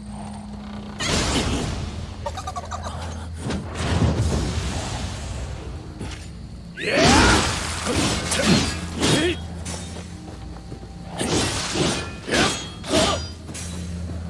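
Swords swish and clash in a fight.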